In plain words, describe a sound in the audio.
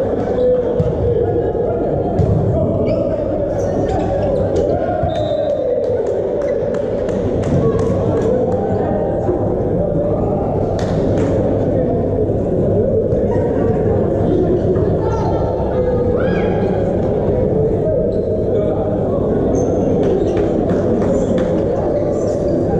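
A volleyball is struck hard by hand in a large echoing hall.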